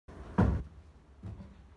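A body lands with a heavy thump on the floor.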